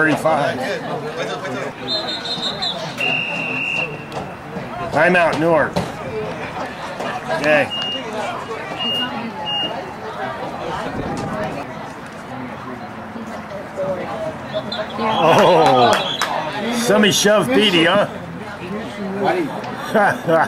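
People shout and cheer outdoors.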